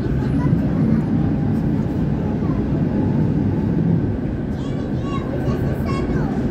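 A tram rumbles steadily along rails over cobblestones.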